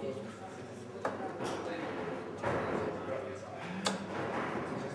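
Darts thud into a dartboard.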